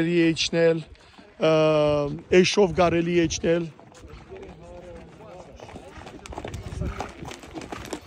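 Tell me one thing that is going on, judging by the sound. Horses' hooves clop on a dirt path.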